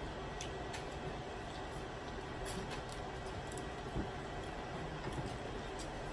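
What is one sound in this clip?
A woman chews and crunches on food.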